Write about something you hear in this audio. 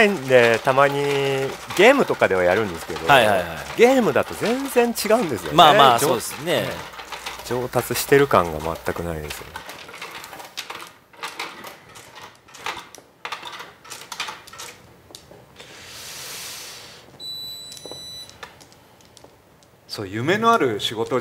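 Mahjong tiles click and clack against each other and the table.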